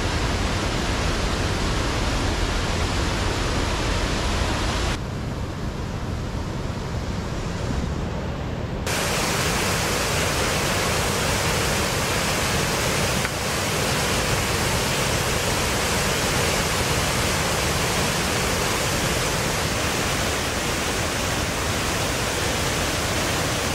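Water roars steadily as it rushes over a weir.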